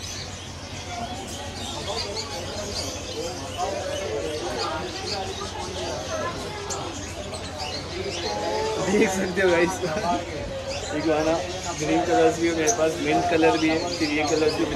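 A young man talks cheerfully and laughs close by.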